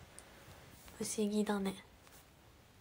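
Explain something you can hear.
A young woman speaks briefly and playfully, close to a microphone.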